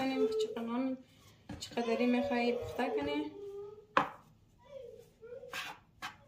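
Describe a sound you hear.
A knife scrapes and taps on a wooden board.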